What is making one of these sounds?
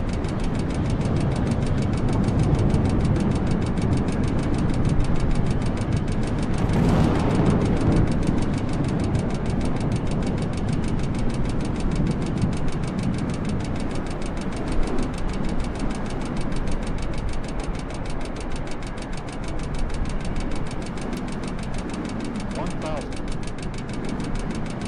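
Jet engines roar steadily as an airliner flies past.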